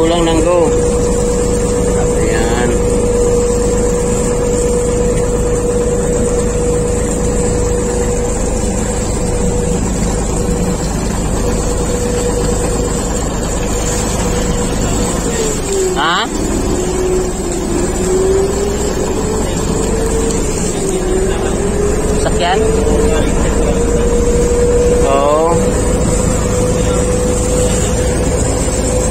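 Choppy water splashes against a boat's hull.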